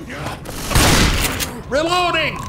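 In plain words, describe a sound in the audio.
A shotgun fires a loud blast.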